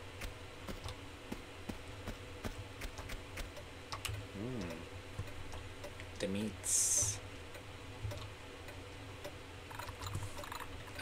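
Footsteps tap quickly on a hard tiled floor.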